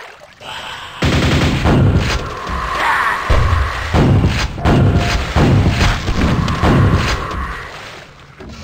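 A double-barrelled shotgun fires booming blasts in a video game.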